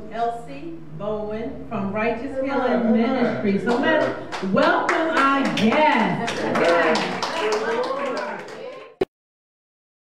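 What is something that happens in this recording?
A woman speaks into a microphone, addressing a room with animation.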